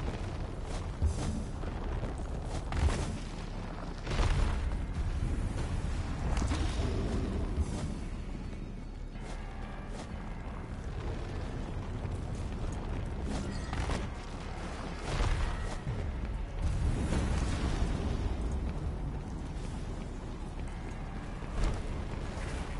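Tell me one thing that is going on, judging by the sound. Heavy blows boom with a deep rumble.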